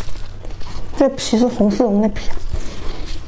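A young woman speaks briefly and softly close to a microphone.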